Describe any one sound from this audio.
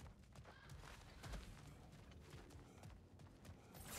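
Heavy footsteps crunch on gravel as a warrior runs.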